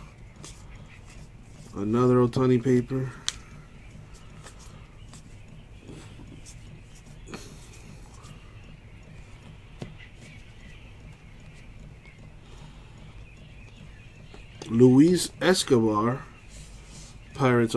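Trading cards slide and rustle against each other in hands.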